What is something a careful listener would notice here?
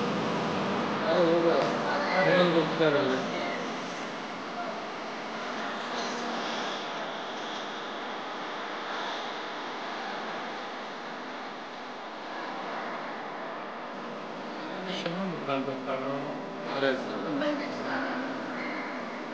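People in an audience chatter nearby in a large echoing hall.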